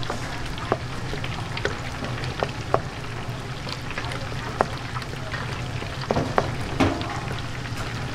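A wooden spoon scrapes and squelches through batter in a metal bowl.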